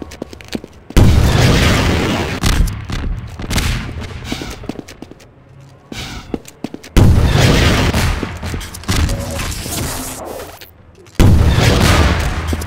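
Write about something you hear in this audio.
Explosions boom and rumble with a long roar.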